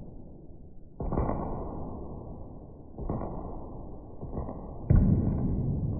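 Hands tap and knock on a wooden desk.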